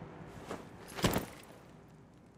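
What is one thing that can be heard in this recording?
A knee lands on a stone floor with a heavy clank.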